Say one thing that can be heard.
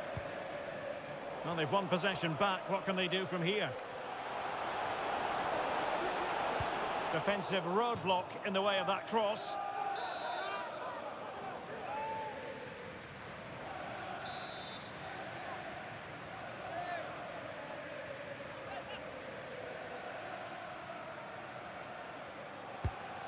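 A stadium crowd roars and murmurs steadily.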